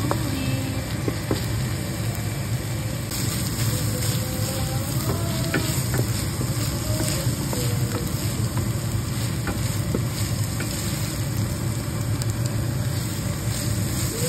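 A wooden spatula scrapes and stirs through ground beef in a frying pan.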